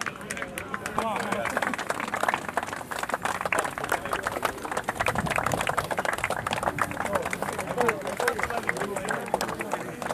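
Several young men chatter and call out to each other.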